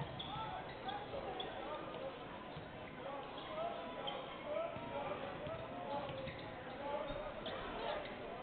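A basketball thumps as it is dribbled on the floor.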